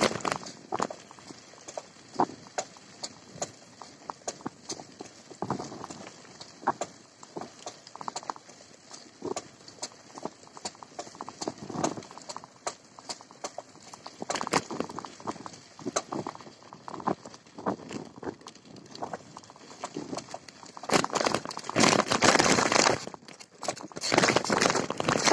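Bicycle tyres crunch over a dirt and gravel track.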